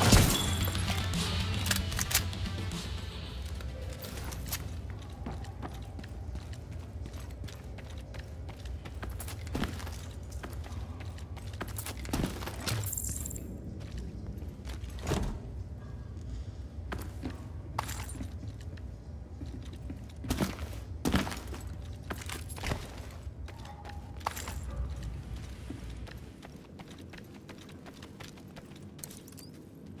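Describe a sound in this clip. Footsteps thud and shuffle on a hard floor.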